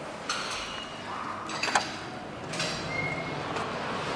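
A glass door clicks open.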